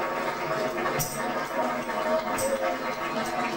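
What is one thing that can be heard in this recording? A tambourine jingles and thumps.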